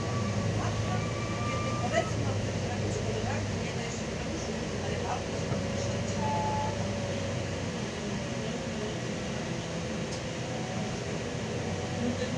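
Loose parts of a bus rattle and knock now and then.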